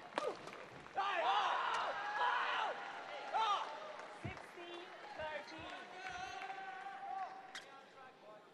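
A crowd in a large hall cheers and applauds.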